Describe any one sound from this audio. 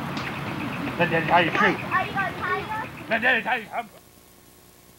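A young child babbles close by.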